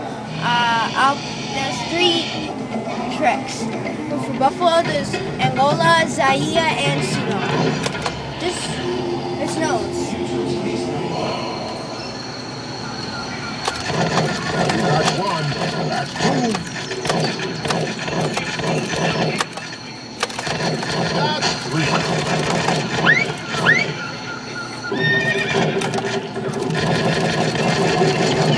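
An arcade game plays loud music and sound effects.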